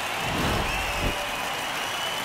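A baseball smacks into a fielder's glove.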